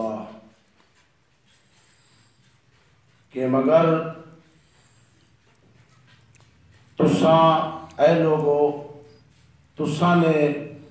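A man speaks through a microphone, chanting in long drawn-out phrases with pauses between them.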